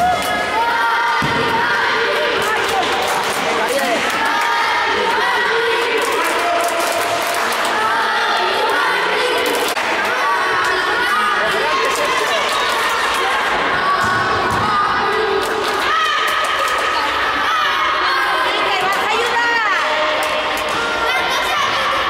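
Children shout and call out loudly in a large echoing hall.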